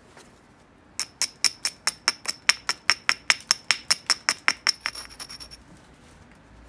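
A small abrasive block rubs quickly back and forth against a hard stone in short, rasping strokes.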